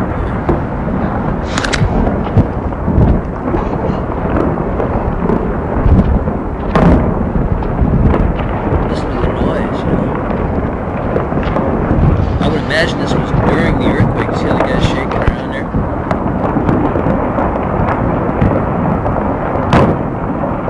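Rock and earth rumble and roar as a hillside slides down.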